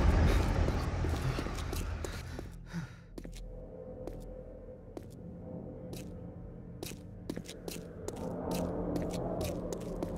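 Footsteps crunch on gravel at a steady pace.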